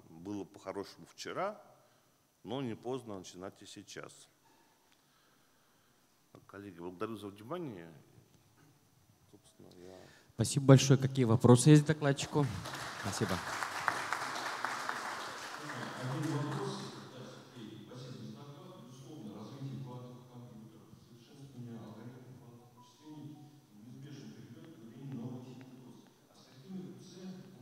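A man speaks steadily over a microphone and loudspeakers in a large hall.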